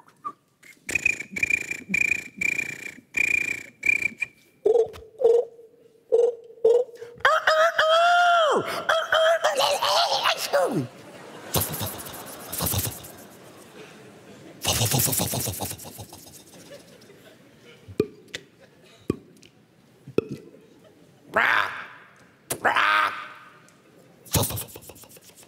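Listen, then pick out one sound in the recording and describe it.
A middle-aged man speaks with animation into a microphone on stage.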